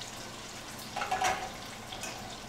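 A frying pan clatters onto a stovetop.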